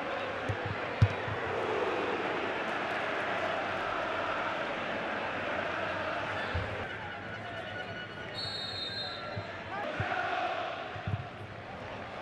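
A football is kicked hard with a dull thump.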